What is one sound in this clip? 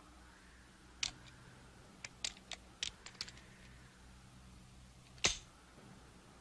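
A revolver clicks and rattles as it is handled.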